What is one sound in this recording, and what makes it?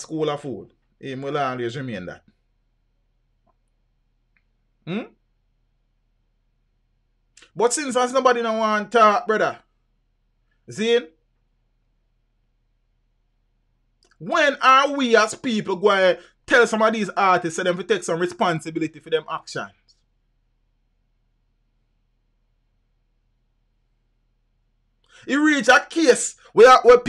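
A man talks with animation into a close microphone, pausing often.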